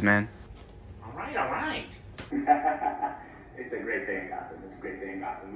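A young man laughs through a loudspeaker.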